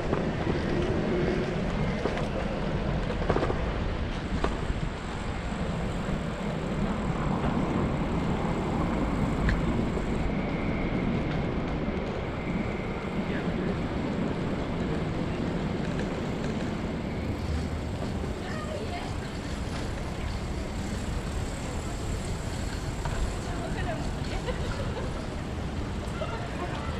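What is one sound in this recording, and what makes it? Distant city traffic hums steadily outdoors.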